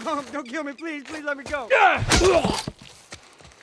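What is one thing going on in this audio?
A man pleads frantically, close by.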